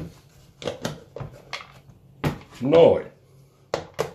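A plastic lid snaps off a container.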